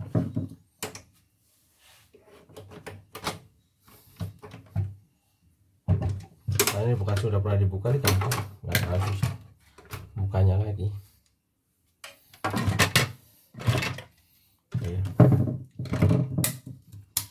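Plastic parts of a machine cover knock and rattle as it is lifted off.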